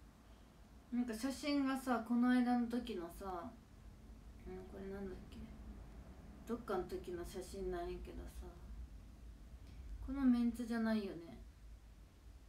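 A young woman talks softly and casually, close to a microphone.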